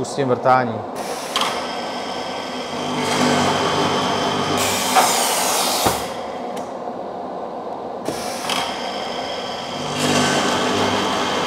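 A drilling machine whirs loudly and drills into a wooden panel.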